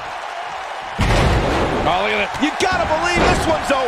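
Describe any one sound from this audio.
A body slams heavily onto a wrestling ring mat.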